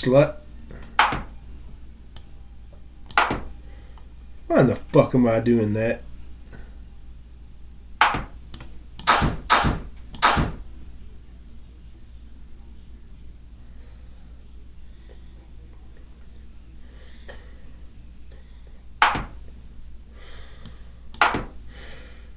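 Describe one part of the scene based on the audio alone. A chess game's piece moves click sharply now and then.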